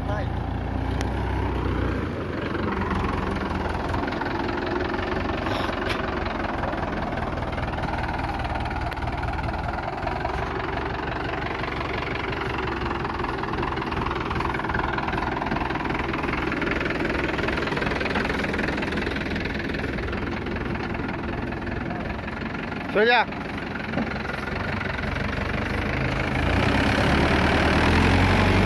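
A diesel tractor engine idles.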